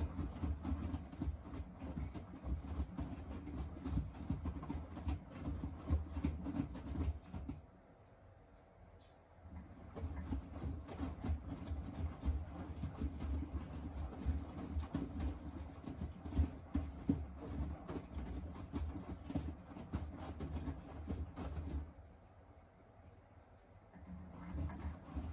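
Wet laundry sloshes and thumps inside a washing machine drum.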